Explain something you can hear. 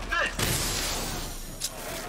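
Smoke hisses out in a thick cloud.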